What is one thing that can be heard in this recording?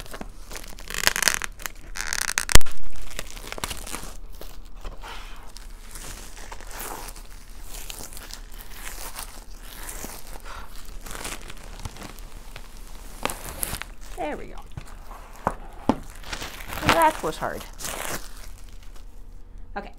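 Cardboard scrapes and rustles as a box is opened.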